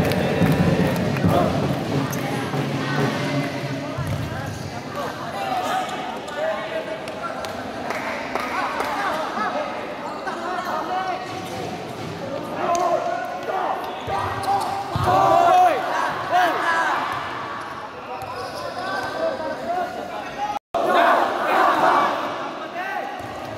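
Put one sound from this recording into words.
Young players shout and call out across a large echoing indoor hall.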